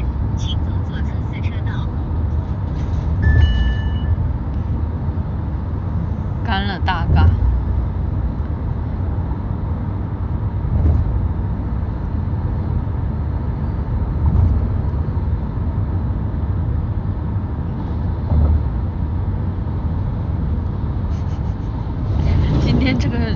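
A young woman speaks softly, close to the microphone.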